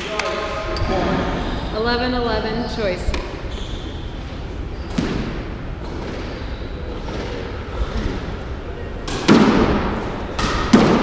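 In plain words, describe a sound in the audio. A squash ball smacks off racquets and walls in an echoing court.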